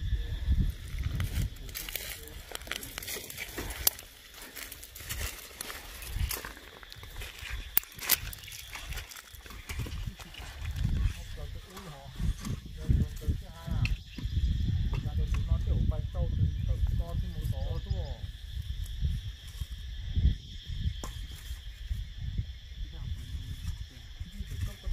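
Footsteps crunch over dry twigs and earth.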